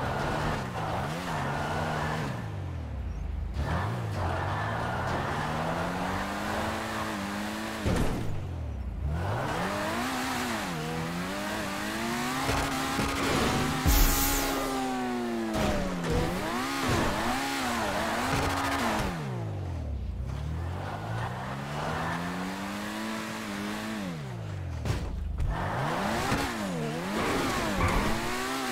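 A car engine revs hard, its pitch rising and falling again and again.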